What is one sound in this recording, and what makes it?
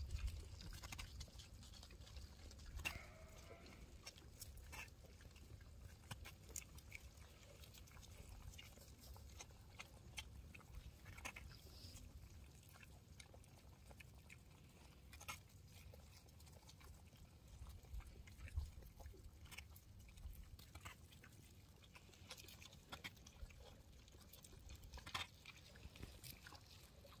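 Sheep rustle and crunch through dry straw nearby.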